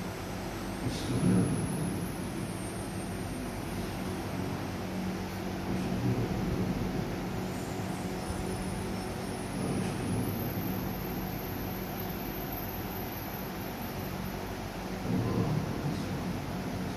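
A man speaks quietly at a distance in a large, echoing hall.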